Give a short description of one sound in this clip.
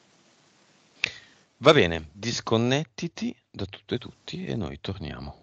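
A man talks calmly over an online call.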